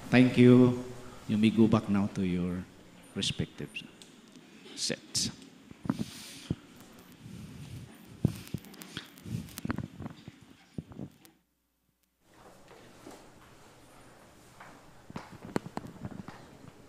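A crowd of people chatters and murmurs in a large echoing hall.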